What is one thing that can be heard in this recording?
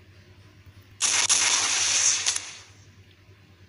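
A missile launches with a loud whoosh.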